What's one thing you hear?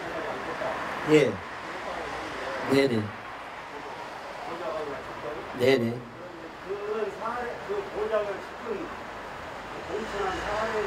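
A middle-aged man speaks firmly into a microphone, heard through a loudspeaker outdoors.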